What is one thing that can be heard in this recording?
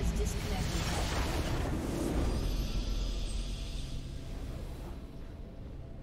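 A game's victory fanfare bursts out with a shimmering whoosh, then fades.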